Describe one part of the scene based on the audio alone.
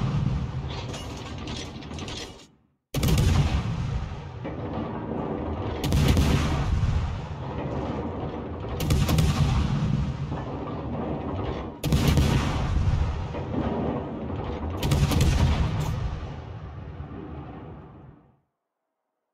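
Ship guns fire in heavy booming salvos.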